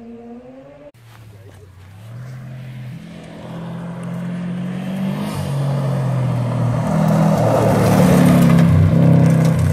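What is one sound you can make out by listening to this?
A car engine approaches, growing steadily louder as it revs.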